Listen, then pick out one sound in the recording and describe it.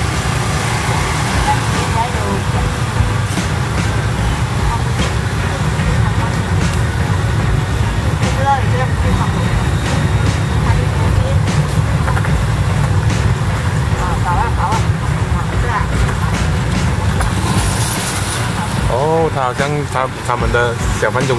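A motorbike engine rumbles steadily close by.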